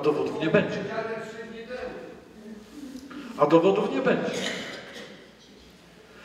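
A middle-aged man speaks calmly into a microphone in a reverberant hall.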